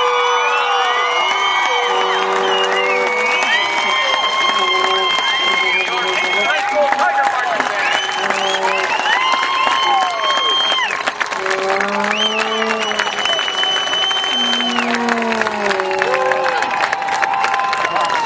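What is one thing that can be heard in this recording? A marching band plays brass and drums outdoors.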